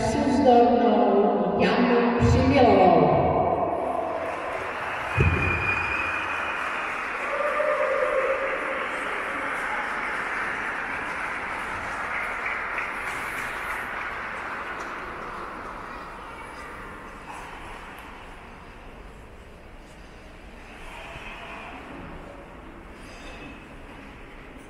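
Skate blades hiss and scrape across ice in a large echoing hall.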